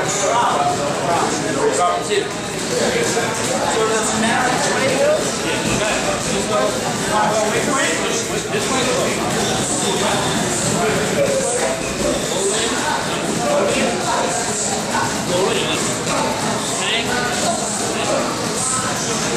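A man speaks with animation close by, as though explaining.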